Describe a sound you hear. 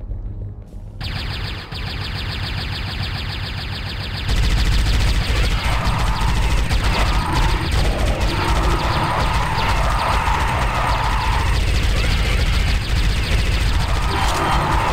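Rapid gunfire rattles without pause.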